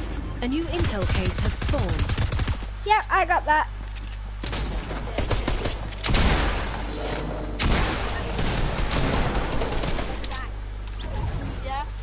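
Gunshots crack rapidly in a video game.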